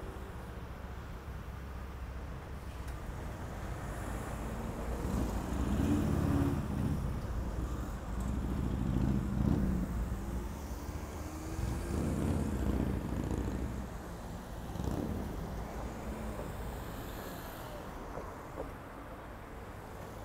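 Cars and a truck pass close by with a low rumble of engines and tyres.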